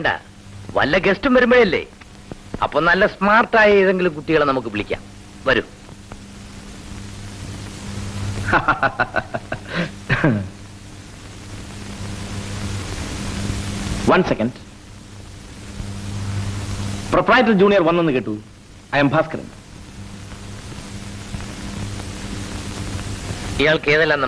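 Men talk loudly with animation.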